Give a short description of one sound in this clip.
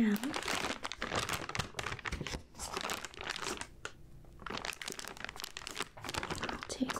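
A woman whispers softly, close to a microphone.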